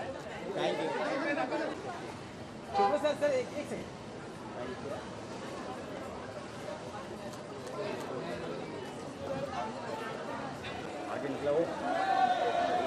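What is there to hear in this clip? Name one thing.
Several men talk and call out nearby in a lively crowd outdoors.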